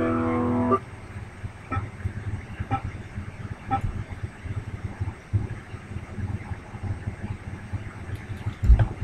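Muted electric guitar strings are strummed with dull, quick thumps.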